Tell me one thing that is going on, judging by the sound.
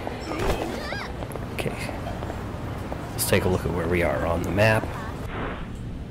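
Footsteps run across pavement.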